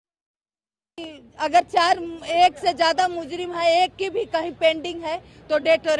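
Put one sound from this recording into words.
An elderly woman speaks emotionally into a microphone, close by.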